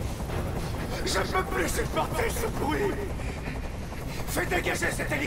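A man shouts angrily up close.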